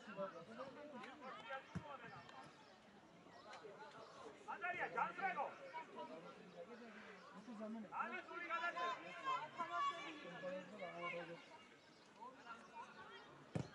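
Young female players shout and call to each other at a distance outdoors.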